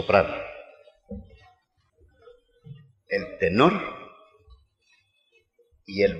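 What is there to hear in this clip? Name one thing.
An elderly man talks and laughs close by.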